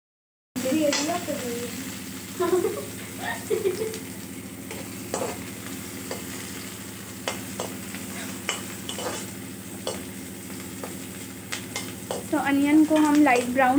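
A metal spoon scrapes and knocks against a pan.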